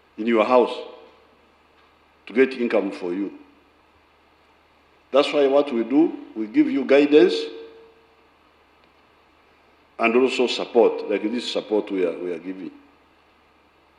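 An elderly man speaks slowly and deliberately into a microphone, in short phrases with long pauses.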